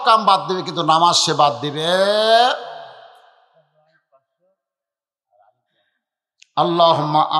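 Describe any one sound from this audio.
An elderly man preaches forcefully into a microphone, his voice booming through loudspeakers with a ringing echo.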